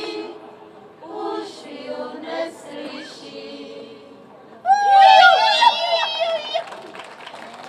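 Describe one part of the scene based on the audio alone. A group of women sing together through microphones.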